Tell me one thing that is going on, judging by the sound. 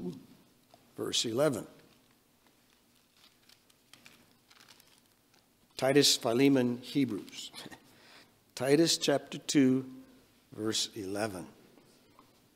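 An elderly man speaks slowly and solemnly into a microphone, with long pauses.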